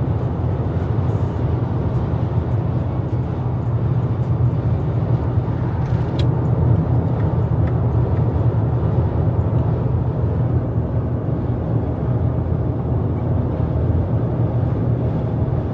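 Tyres roar on a highway road surface.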